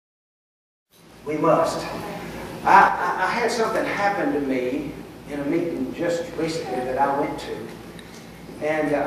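A middle-aged man speaks calmly and earnestly through a microphone.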